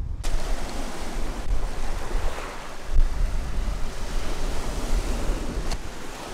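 Footsteps splash through shallow surf.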